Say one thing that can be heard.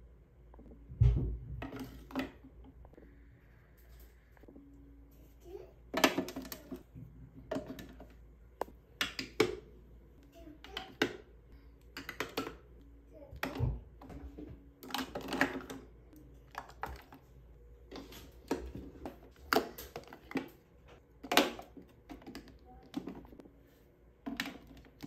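Plastic makeup containers clack and tap against a clear plastic organizer.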